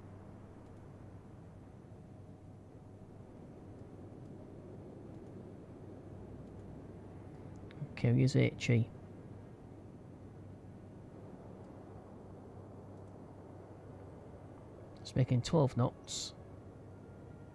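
Rough sea waves wash and churn steadily.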